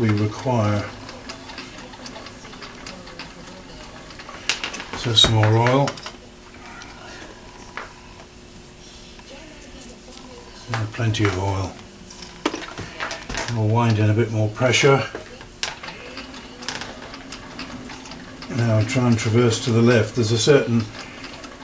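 A small machine whirs steadily with a light mechanical clatter.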